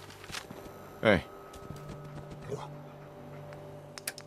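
A dog growls playfully close by.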